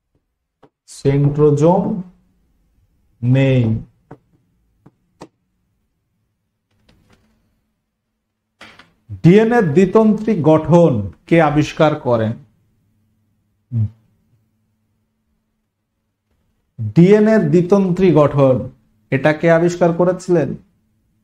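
A man lectures with animation, close to a microphone, in short bursts with pauses.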